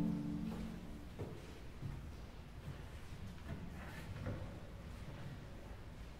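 Footsteps tap slowly on a hard floor in a large echoing hall.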